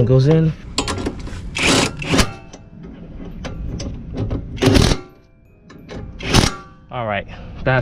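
A cordless impact wrench rattles in short bursts.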